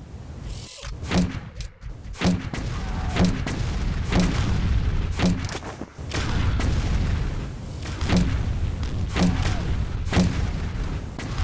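Gunfire bursts out in loud, rapid blasts.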